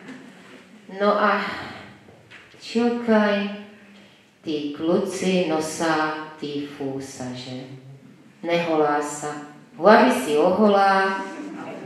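An elderly woman speaks with animation through a microphone and loudspeakers.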